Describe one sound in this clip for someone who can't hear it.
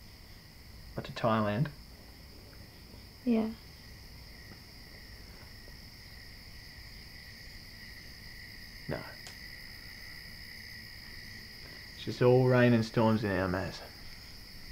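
A young man speaks quietly.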